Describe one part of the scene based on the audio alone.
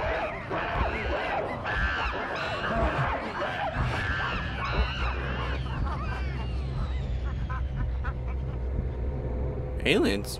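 Monkeys screech and chatter excitedly.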